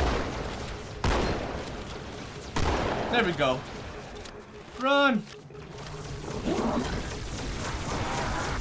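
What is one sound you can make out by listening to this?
Energy weapons fire in sharp zapping shots.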